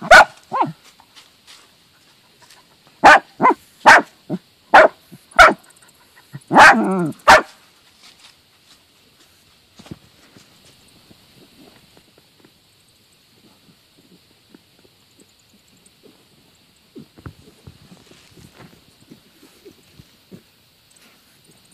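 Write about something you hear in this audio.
Dogs scratch and dig in loose dirt.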